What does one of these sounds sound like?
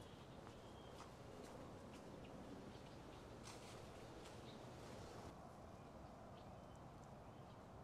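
Wind blows through leafy trees outdoors.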